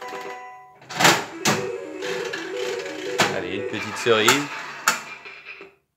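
A slot machine's reels spin and stop with sharp clunks.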